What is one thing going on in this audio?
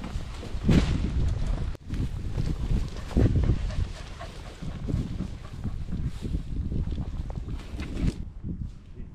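Boots tramp and rustle through long dry grass close by.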